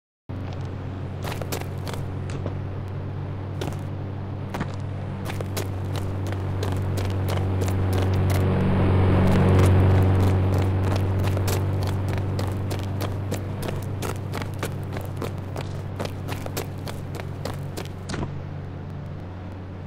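Footsteps tap quickly on a hard floor and ground.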